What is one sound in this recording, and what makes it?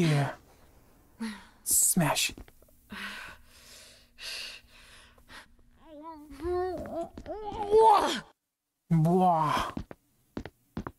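A young woman speaks quietly and tensely, close by.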